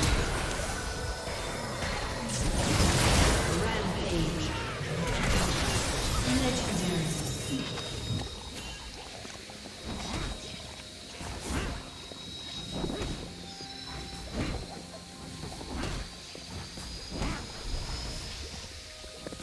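Spell effects whoosh and crackle in a fast battle.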